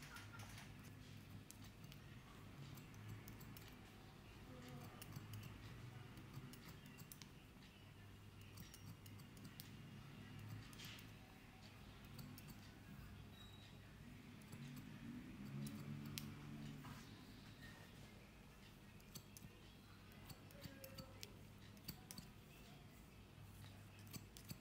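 Scissors snip close up with small sharp clicks.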